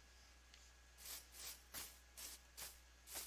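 Footsteps crunch on grass at a steady pace.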